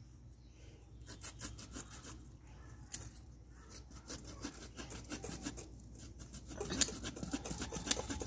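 A knife scrapes scales off a fish with quick rasping strokes.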